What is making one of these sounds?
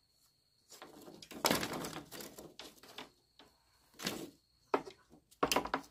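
Bamboo poles clatter and knock together.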